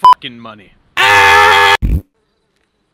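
A man screams loudly.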